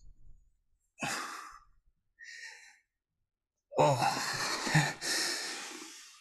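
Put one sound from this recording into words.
A young man groans and speaks up close.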